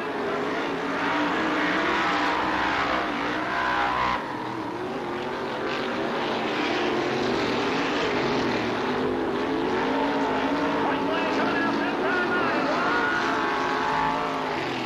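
Race car engines roar loudly, revving up and down as they speed past.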